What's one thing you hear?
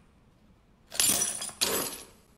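Bolt cutters snap through a metal chain.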